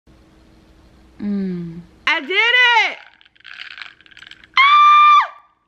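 A drink slurps through a straw.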